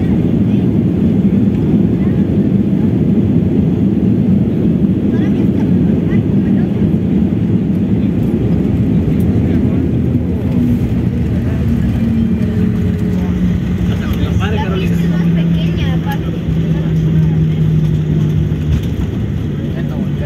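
Jet engines roar loudly as an airliner rolls down a runway.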